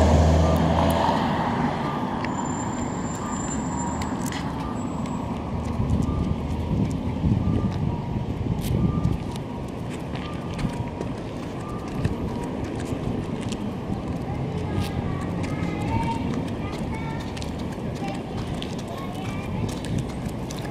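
Traffic hums from a nearby street.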